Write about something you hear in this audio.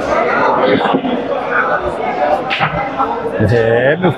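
A billiard cue strikes a ball with a sharp click.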